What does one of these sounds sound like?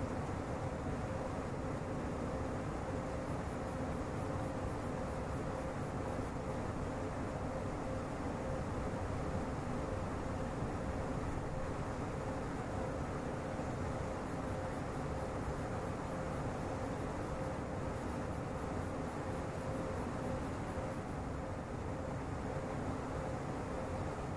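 A train's motor hums with a steady tone.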